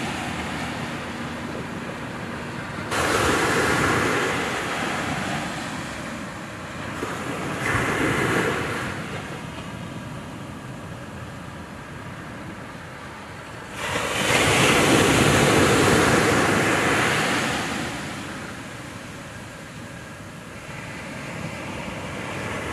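Waves wash onto the shore and break in surges.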